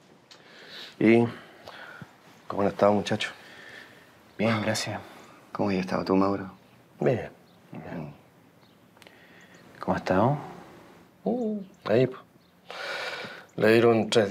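A young man answers calmly and close by.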